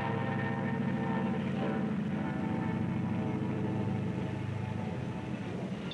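A diesel train rumbles past.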